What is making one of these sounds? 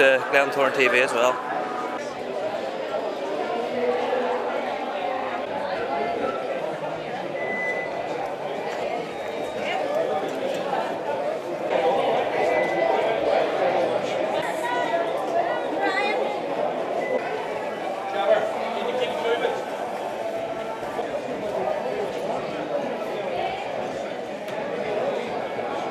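A crowd chatters throughout in a large echoing hall.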